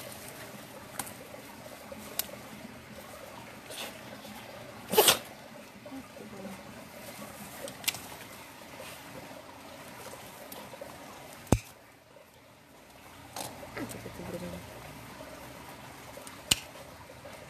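Nail clippers snip a dog's claws with sharp clicks.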